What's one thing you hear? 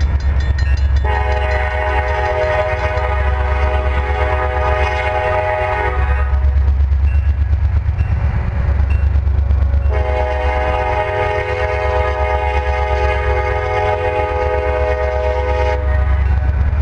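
A train horn blares in long blasts.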